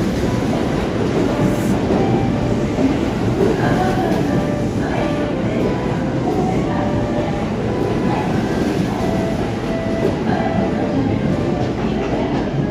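A train rumbles slowly along a platform in an echoing underground station.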